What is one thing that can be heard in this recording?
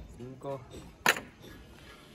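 Metal pincers clatter down onto wood.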